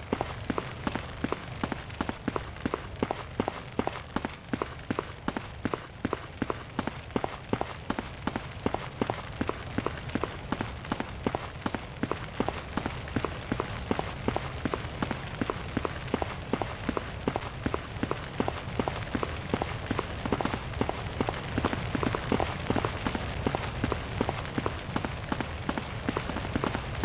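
Footsteps clatter quickly and steadily on a hard floor.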